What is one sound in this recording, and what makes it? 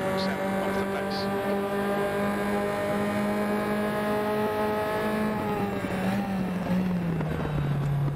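A racing car engine drones loudly at high revs, dropping in pitch near the end as the car slows.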